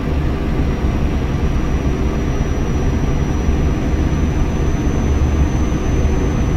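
Tyres hum on the road surface.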